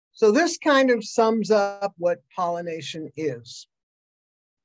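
A woman speaks calmly into a microphone, as if presenting over an online call.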